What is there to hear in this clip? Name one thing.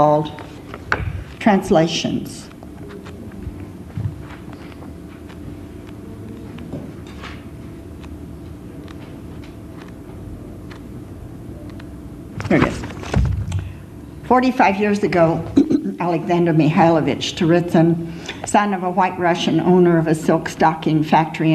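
A middle-aged woman reads aloud calmly into a microphone.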